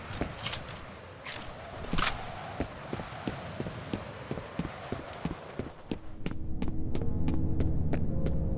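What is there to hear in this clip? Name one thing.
Footsteps walk steadily across a hard concrete floor.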